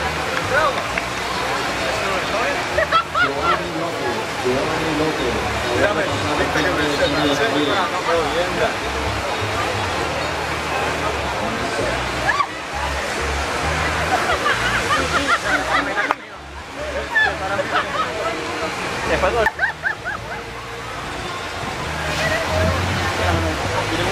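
Children and adults chatter and shout nearby outdoors.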